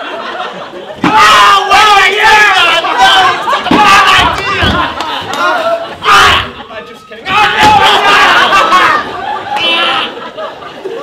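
A second man shouts loudly and excitedly on a stage.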